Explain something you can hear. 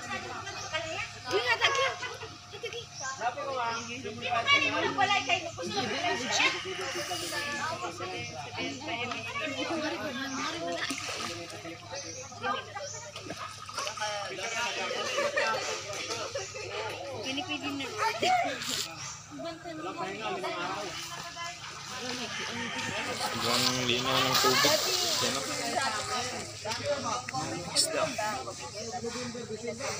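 Children's voices chatter and call out close by, outdoors.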